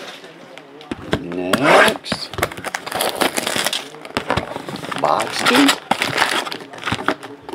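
Cardboard boxes slide and bump against each other.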